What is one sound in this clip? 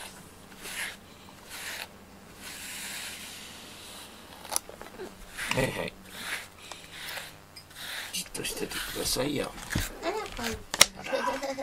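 A brush strokes through a cat's fur with soft, scratchy swishes.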